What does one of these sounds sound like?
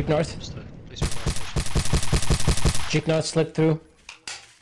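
A pistol fires shots.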